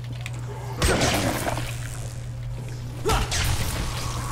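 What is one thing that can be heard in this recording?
A metal pipe thuds hard into a zombie's body.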